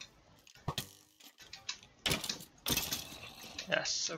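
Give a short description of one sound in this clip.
A sword strikes a rattling skeleton with sharp hits.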